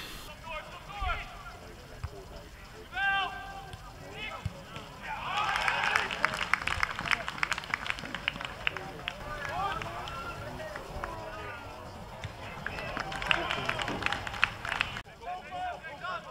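Football players shout to each other across an open pitch.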